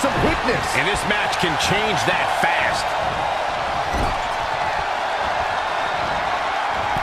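A large crowd cheers steadily in an arena.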